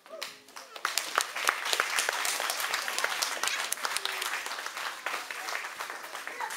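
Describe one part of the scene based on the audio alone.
Children's feet stamp and shuffle on a wooden stage.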